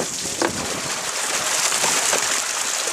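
Wet fish slap and patter into a bucket.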